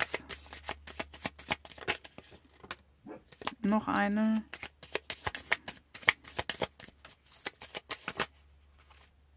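Playing cards are shuffled by hand with quick, soft flicking clicks.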